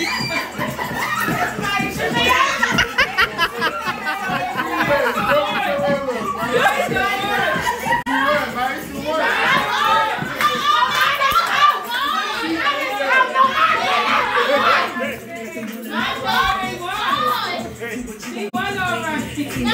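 A crowd of young women and men shout and cheer loudly close by.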